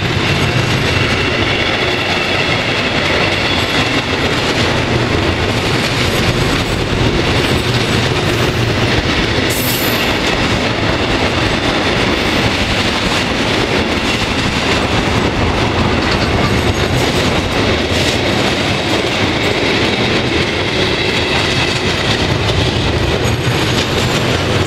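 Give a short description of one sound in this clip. Metal wheels squeal faintly against the rails.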